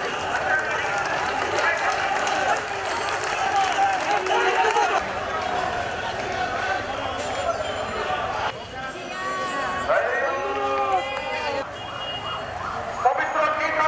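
A crowd of men chants slogans loudly outdoors.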